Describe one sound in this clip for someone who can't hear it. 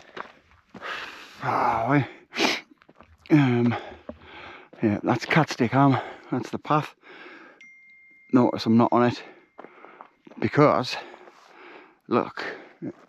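A man talks calmly close to the microphone, outdoors.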